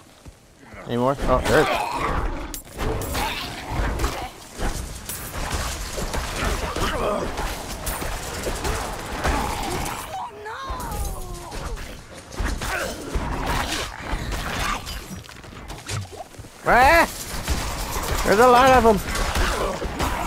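Creatures growl and shriek as they attack.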